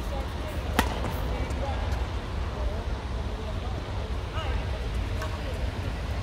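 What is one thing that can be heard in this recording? A badminton racket strikes a shuttlecock with a sharp pop.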